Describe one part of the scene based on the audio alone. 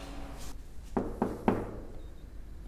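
Knuckles knock sharply on a door.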